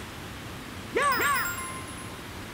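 A springy cartoon jump sound plays.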